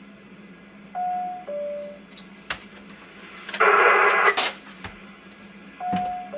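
A radio gives short electronic beeps.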